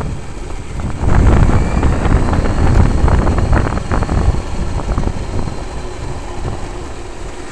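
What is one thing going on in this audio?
Tyres rumble and clatter over wooden planks.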